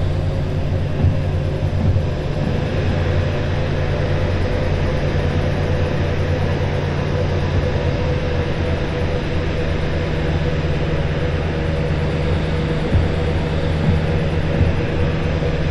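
Locomotive wheels clack over rail joints.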